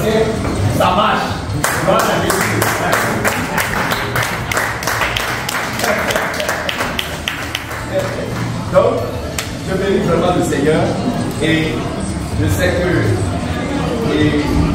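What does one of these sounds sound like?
Men and women chat and laugh nearby.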